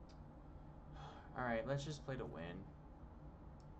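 A man speaks briefly into a close microphone with animation.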